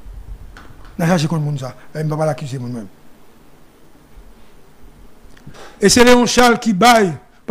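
A man speaks calmly and clearly into a close microphone, pausing between phrases.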